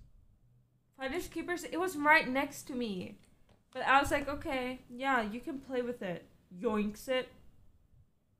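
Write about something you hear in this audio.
A young woman speaks from across the room.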